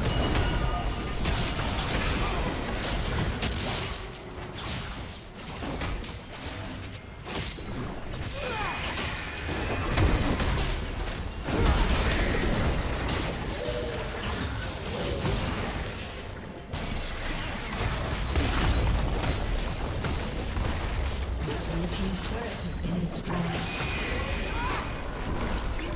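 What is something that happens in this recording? Game spell effects whoosh and crackle in a fast battle.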